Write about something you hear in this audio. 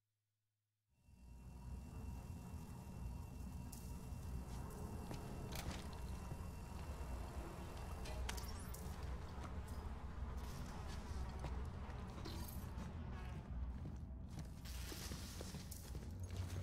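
Heavy footsteps thud on a hard metal floor.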